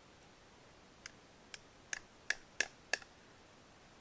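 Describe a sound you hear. A hand knocks on a tree trunk several times.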